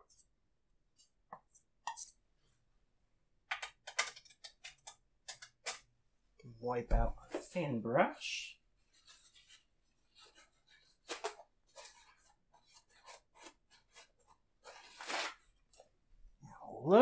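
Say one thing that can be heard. A paintbrush taps and scrapes against a canvas.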